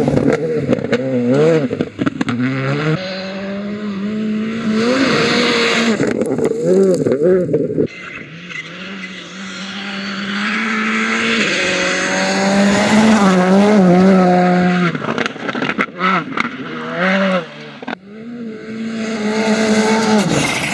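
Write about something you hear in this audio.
A rally car engine revs hard and roars past, its pitch rising and falling with gear changes.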